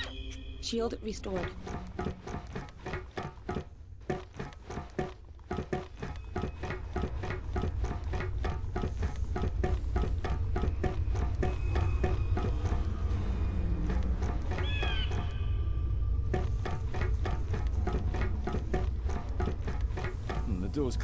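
Footsteps clang steadily on metal stairs and floors.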